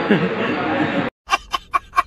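A young man sings loudly with strained emotion.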